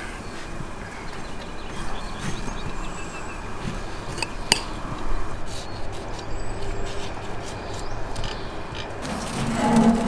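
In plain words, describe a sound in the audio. A knife cuts through lemons on a plate.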